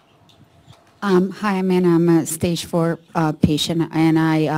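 A woman speaks calmly into a microphone, heard in a room.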